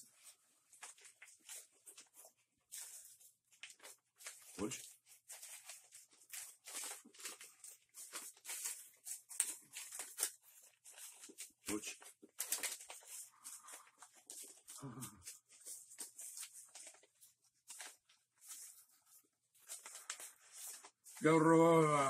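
Paper crinkles and rustles close by.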